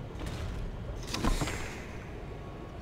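A heavy book opens with a papery whoosh.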